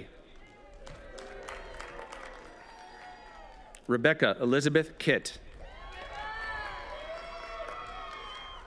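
A crowd applauds outdoors with scattered clapping.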